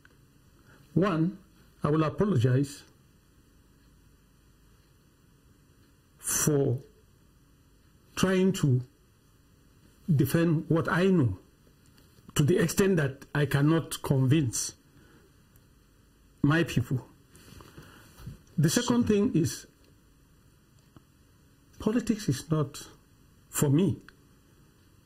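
An elderly man speaks through a microphone in short, measured phrases with pauses.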